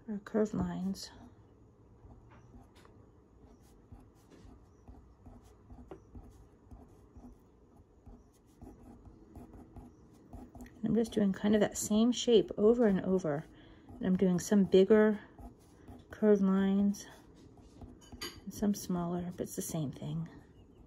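A pen scratches and taps lightly on paper.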